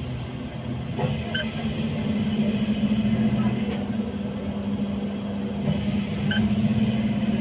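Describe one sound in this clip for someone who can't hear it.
Heavy machinery hums and rumbles.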